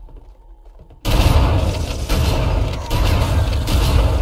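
Energy blasts crackle and explode nearby.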